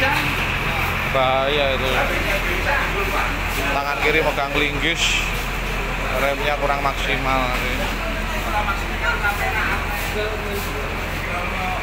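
A man talks loudly close by.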